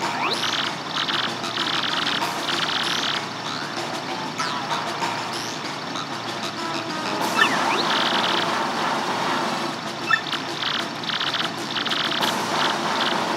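Rapid electronic blips chatter in quick bursts.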